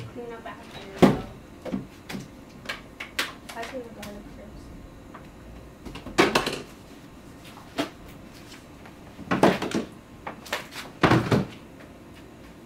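Plastic spice bottles knock and rattle against a counter.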